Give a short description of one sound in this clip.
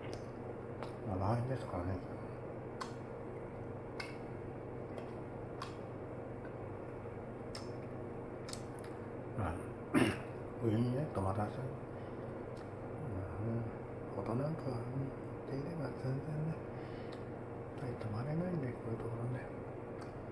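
A middle-aged man speaks calmly and haltingly, close by.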